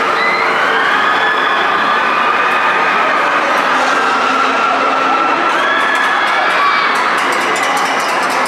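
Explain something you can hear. A large swinging ride rushes through the air with a whooshing roar.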